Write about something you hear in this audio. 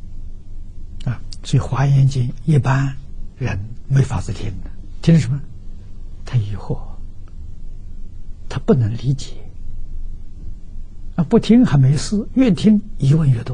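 An elderly man speaks calmly and warmly into a close microphone.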